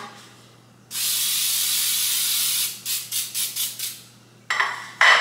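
Cooking spray hisses in short bursts.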